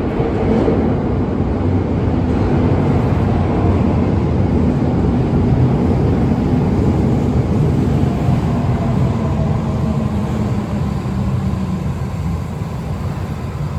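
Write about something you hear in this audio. A train's wheels rumble and clatter over the rails as it slows beside the platform.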